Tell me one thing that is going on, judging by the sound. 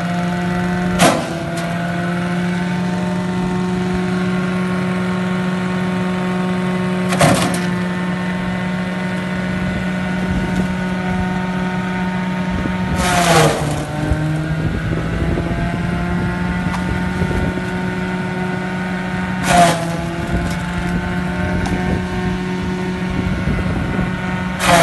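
Stalks crunch and grind as they are fed into a shredder.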